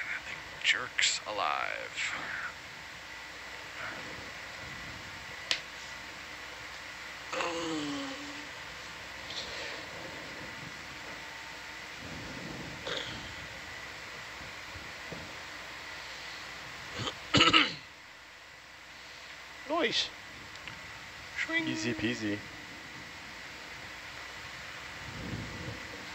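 A robotic arm whirs and hums as it moves underwater.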